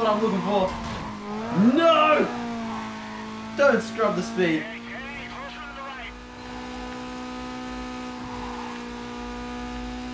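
A race car engine drones at high speed.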